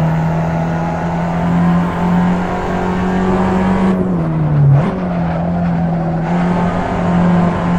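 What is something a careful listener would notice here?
A small four-cylinder hatchback engine drones at high revs, heard from the cockpit.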